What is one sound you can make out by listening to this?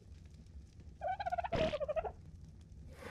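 A small bird-like creature squawks in quick, pitched bursts.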